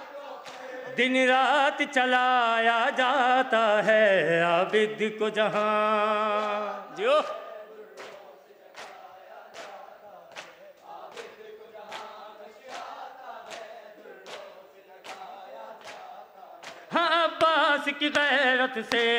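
A young man chants a lament loudly through a microphone.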